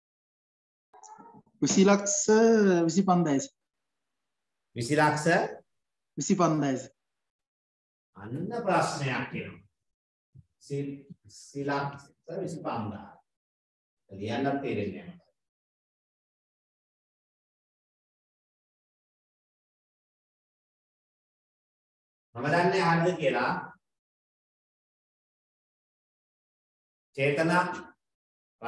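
A man speaks calmly in short phrases, close to a microphone.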